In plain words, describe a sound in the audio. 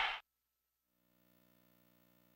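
Faint electronic music plays.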